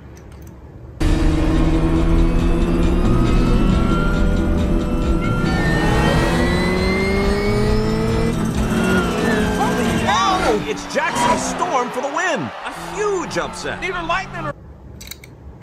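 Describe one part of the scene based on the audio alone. Race car engines roar past at high speed.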